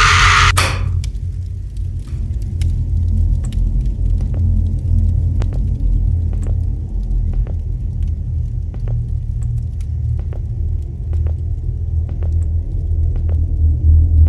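Footsteps tread steadily along a hallway.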